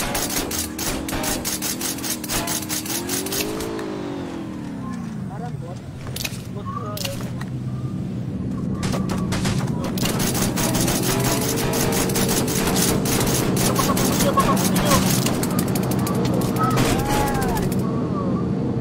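Rapid gunfire bursts out in quick volleys.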